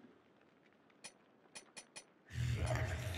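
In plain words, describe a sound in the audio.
Short menu clicks tick several times in quick succession.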